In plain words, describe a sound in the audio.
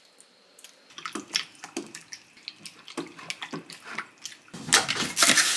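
Tongs stir meat in a glass bowl.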